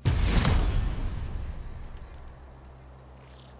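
A bright fanfare jingle rings out and fades.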